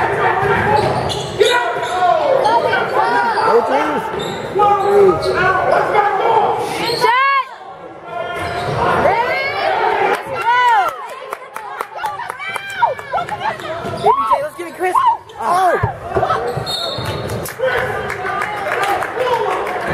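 Spectators chatter in an echoing gym.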